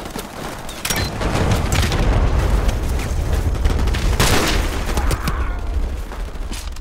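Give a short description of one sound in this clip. A loud explosion booms and rumbles in the distance.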